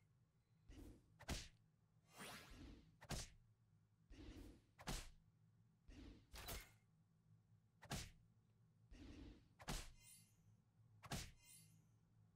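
Game combat effects thump and clash in quick succession.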